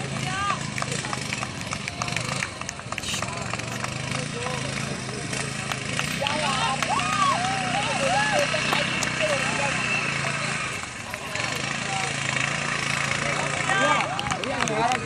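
An off-road buggy engine revs and drones.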